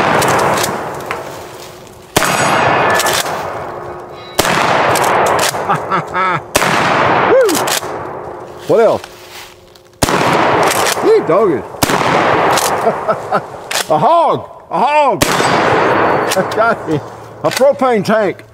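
A shotgun's pump action clacks between shots.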